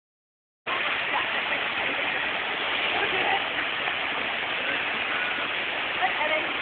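Water splashes steadily down rocks nearby.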